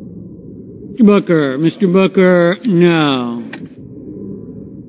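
A man speaks loudly and clearly through a microphone.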